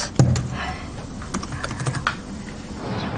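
Fingers type on a laptop keyboard.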